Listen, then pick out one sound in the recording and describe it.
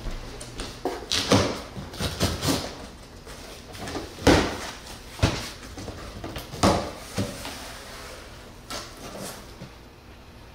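Cardboard box flaps rustle and thump as they are pulled open.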